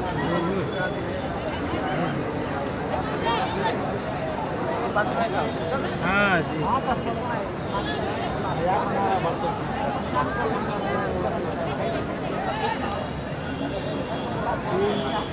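A large outdoor crowd chatters and shouts steadily.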